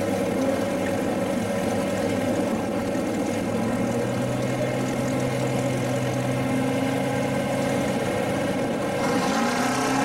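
A big engine idles with a deep, lumpy rumble.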